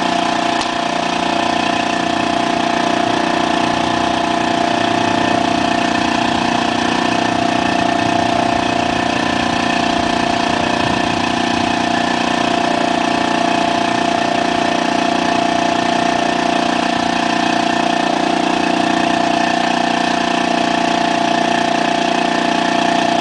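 An air compressor hums steadily close by.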